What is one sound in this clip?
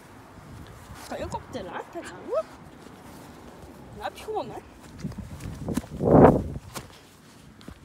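A dog growls and whines playfully up close.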